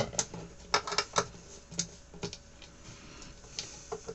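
A screwdriver scrapes and clicks against a metal plate.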